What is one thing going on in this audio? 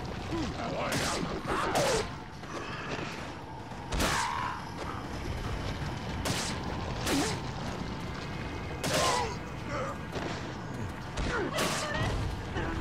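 Pistol shots ring out sharply, one at a time.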